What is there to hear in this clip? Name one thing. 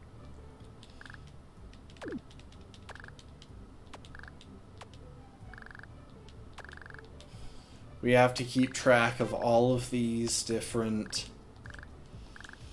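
Short electronic blips chirp in quick bursts.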